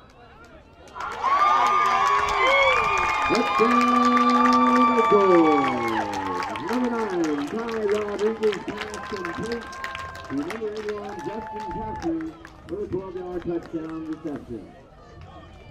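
Young men cheer and shout loudly outdoors.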